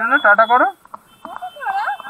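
A woman speaks nearby with animation.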